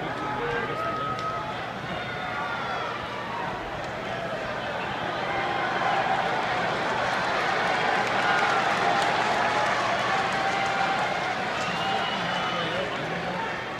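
A large crowd cheers and shouts in a big echoing arena, growing louder.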